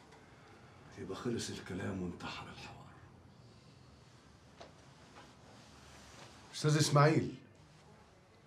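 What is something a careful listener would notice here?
An older man speaks in a low, tense voice nearby.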